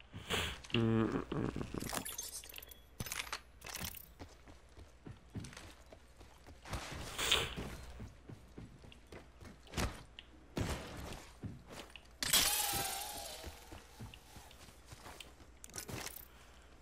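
Short clicks and clatters of game sound effects come in quick bursts.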